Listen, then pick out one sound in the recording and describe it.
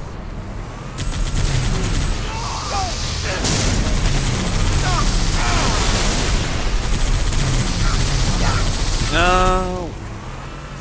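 A mounted machine gun fires rapid bursts.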